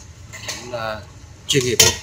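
Metal tongs clink against a container as food is placed in it.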